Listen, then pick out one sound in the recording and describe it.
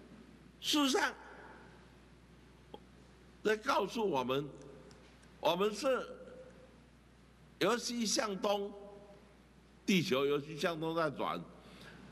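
An elderly man speaks into a microphone in short, emphatic bursts with pauses between them.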